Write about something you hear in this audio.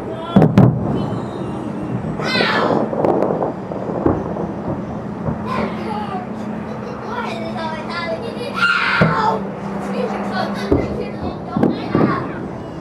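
Fireworks boom and crackle in the distance, outdoors.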